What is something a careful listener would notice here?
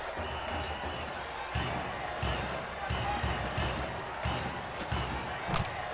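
A large crowd cheers and drums in a steady rhythm.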